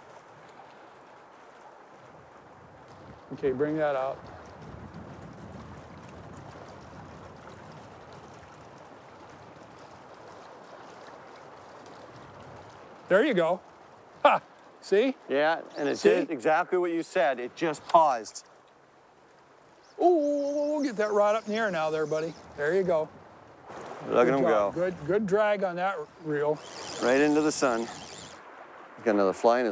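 A river flows and ripples steadily.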